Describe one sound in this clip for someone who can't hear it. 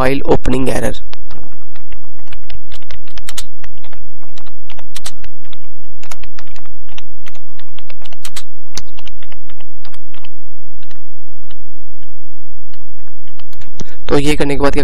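Keys click rapidly on a computer keyboard.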